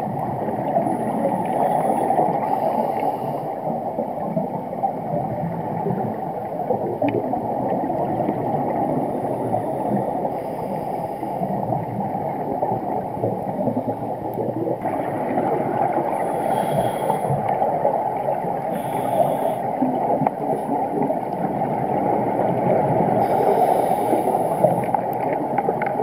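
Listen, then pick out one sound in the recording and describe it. Air bubbles from a diver's regulator gurgle and rush in bursts underwater.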